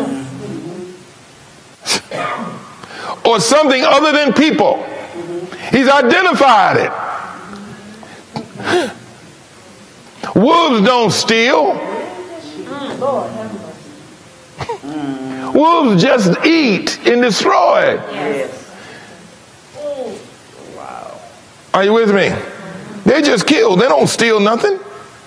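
A middle-aged man speaks with animation, his voice echoing slightly.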